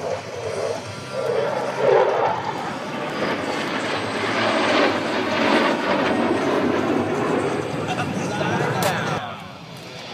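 Jet planes roar loudly overhead.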